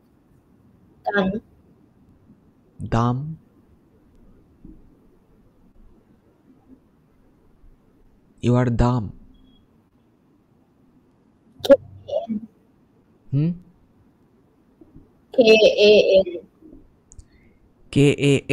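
A teenage boy speaks in short, calm phrases over an online call.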